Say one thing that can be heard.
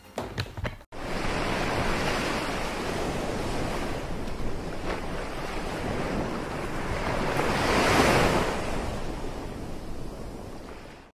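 Waves lap and wash steadily in open water.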